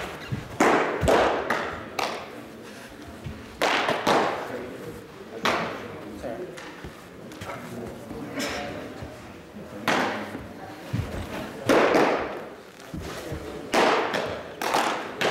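A baseball smacks loudly into a leather glove, echoing in a large hall.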